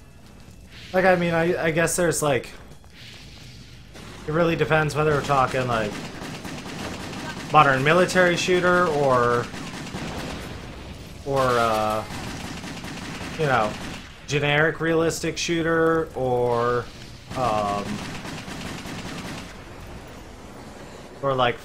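A man talks casually into a close microphone, in bursts.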